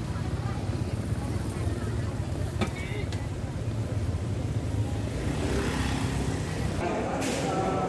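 Motorbike engines rumble by on a busy street.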